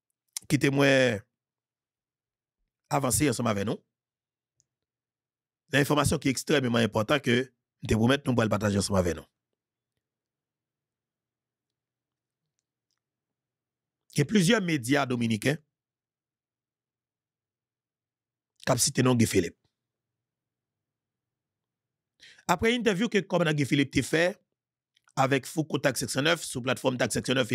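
A man speaks calmly and close into a microphone, in short phrases with long pauses.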